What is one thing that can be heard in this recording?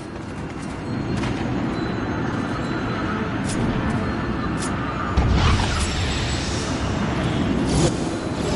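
An electric portal crackles and hums.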